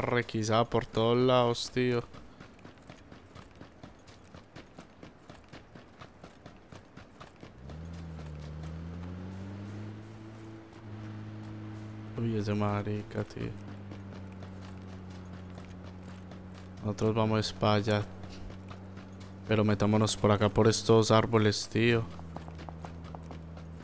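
Footsteps thud quickly on grass as someone runs.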